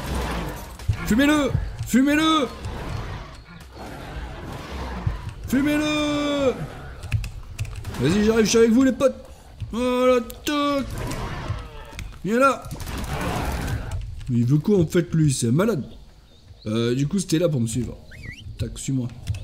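Animals screech and growl while fighting.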